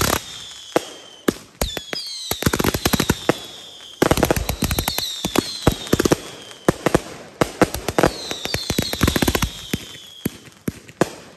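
Fireworks whistle with falling shrieks as they shoot up.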